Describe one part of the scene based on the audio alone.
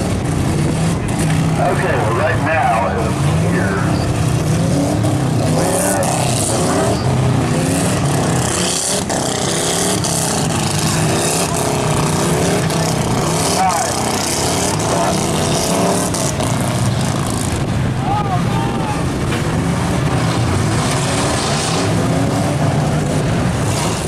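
Many car engines roar and rev loudly outdoors.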